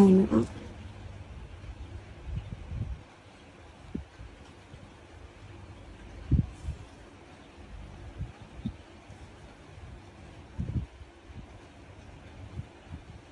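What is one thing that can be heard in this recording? Soft thumps and handling noises come from yarn and a crochet hook being moved on a table.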